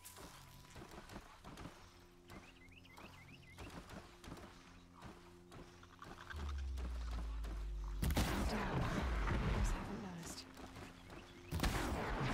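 Arrows are loosed from a bow with sharp twangs.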